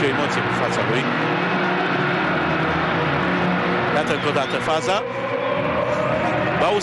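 A stadium crowd murmurs and chants steadily all around.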